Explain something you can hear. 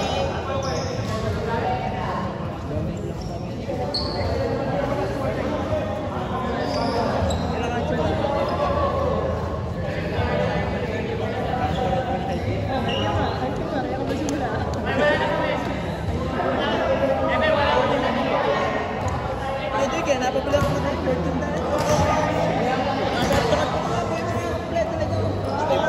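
Young men talk and call out to each other across a large echoing hall.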